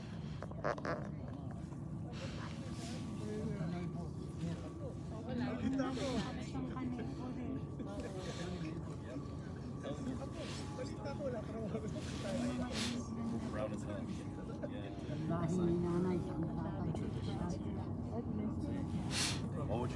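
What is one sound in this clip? Adults talk quietly nearby.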